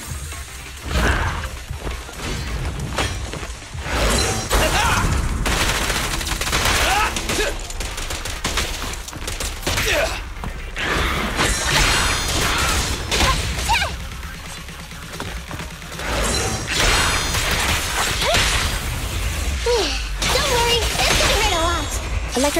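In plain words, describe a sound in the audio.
Heavy impacts boom as blows land.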